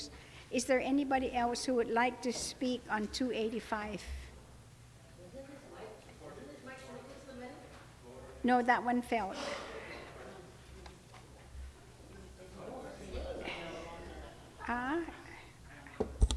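A woman speaks firmly into a microphone.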